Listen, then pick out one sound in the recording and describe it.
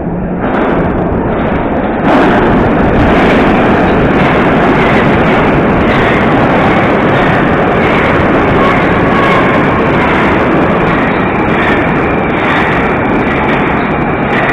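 A subway train roars into an echoing underground station.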